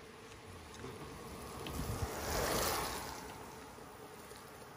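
A bicycle rolls past close by on a wet road, its tyres hissing.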